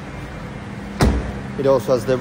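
A car door shuts with a solid thud.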